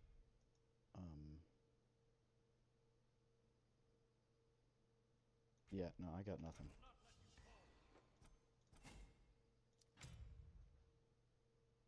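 A young man speaks in short bursts through a headset microphone.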